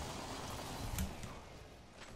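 A heavy thud lands.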